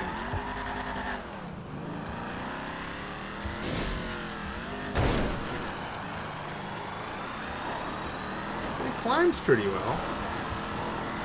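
A car engine revs and roars as the car climbs a rough slope.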